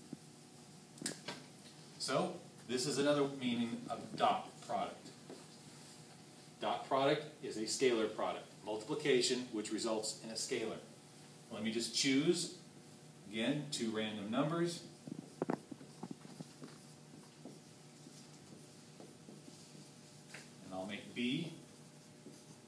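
A man explains calmly, close by.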